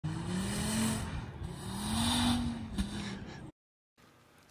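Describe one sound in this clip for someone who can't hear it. A car engine revs hard as tyres spin and slide through snow.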